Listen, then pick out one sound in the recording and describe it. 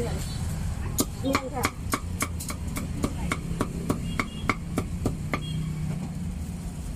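A cleaver chops meat on a wooden board with quick sharp knocks.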